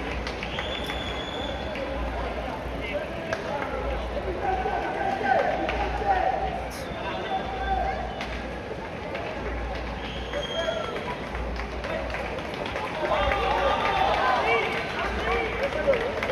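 A crowd of onlookers cheers and shouts outdoors.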